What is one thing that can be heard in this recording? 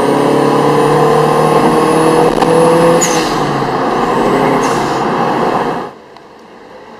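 A car engine roars loudly from inside as it accelerates and shifts gears.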